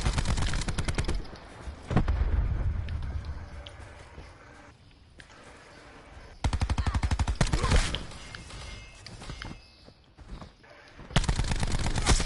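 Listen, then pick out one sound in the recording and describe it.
An automatic rifle fires in rapid bursts close by.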